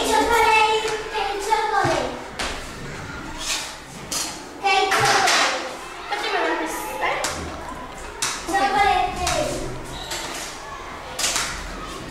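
Children talk and call out close by in a room.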